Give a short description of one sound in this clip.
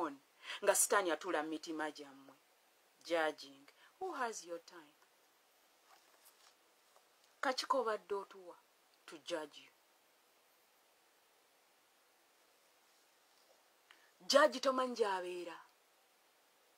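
A middle-aged woman speaks calmly and close to a phone microphone, in short bursts with pauses.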